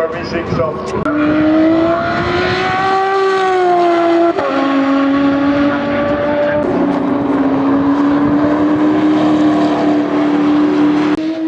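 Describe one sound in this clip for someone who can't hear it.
A racing car engine drones loudly and shifts pitch as the car speeds by.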